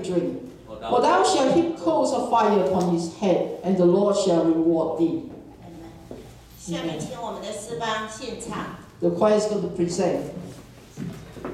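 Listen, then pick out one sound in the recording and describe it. A woman speaks with animation through a microphone in an echoing hall.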